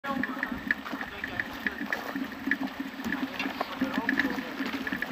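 A bicycle rattles and clatters over a bumpy dirt trail.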